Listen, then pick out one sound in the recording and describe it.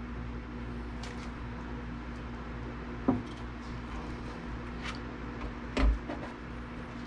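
Cable plugs click and scrape into sockets.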